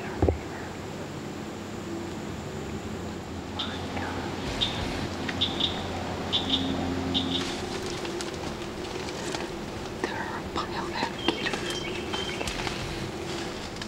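A young woman whispers close by.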